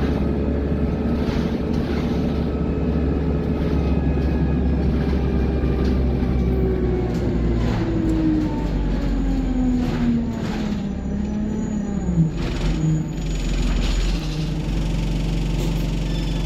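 Loose fittings rattle and clatter inside a moving bus.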